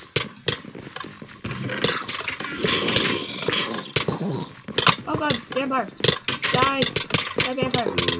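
A sword strikes zombies with quick thuds.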